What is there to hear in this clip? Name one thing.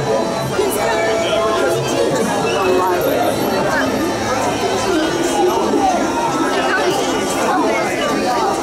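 A large crowd of men, women and children chatters all around outdoors.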